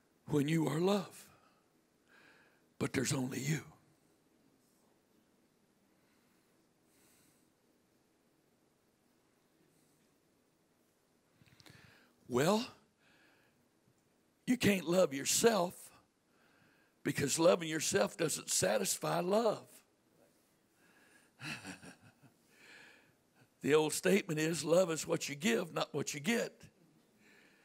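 A middle-aged man speaks into a microphone in pauses, heard through loudspeakers in a room.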